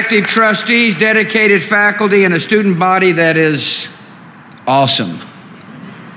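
A man speaks clearly into a microphone.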